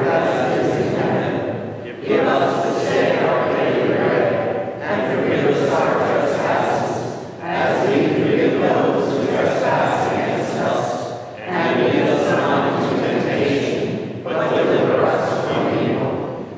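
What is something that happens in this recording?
An elderly man chants slowly through a microphone in an echoing hall.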